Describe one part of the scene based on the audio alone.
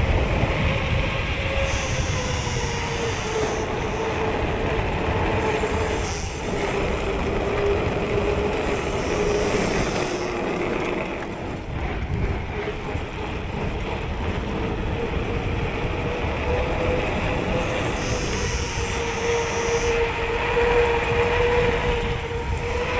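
A bicycle's freewheel hub whirs with a steady buzzing tone.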